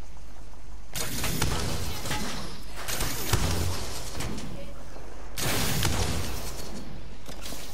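Gunfire bursts out in rapid volleys.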